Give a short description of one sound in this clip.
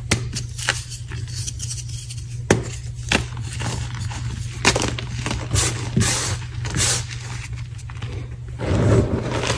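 Chalky powder pours and patters from a hand onto a heap.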